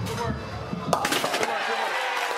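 Bowling pins crash and scatter.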